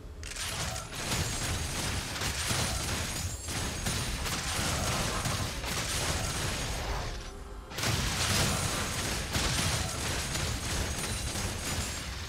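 Game spell effects crackle and burst as characters fight.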